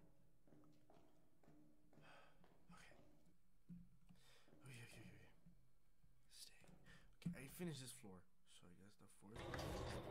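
A young man talks quietly into a close microphone.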